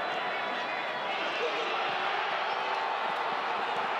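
A football is struck hard.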